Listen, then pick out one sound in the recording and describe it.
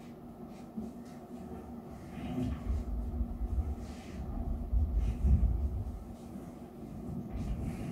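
Footsteps thud across a hard floor.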